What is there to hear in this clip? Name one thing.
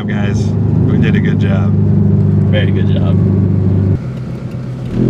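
A car engine hums steadily at idle.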